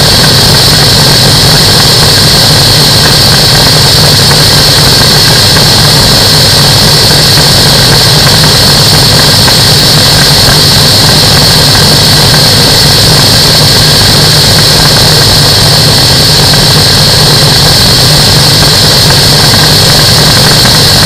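Wind roars hard against the microphone.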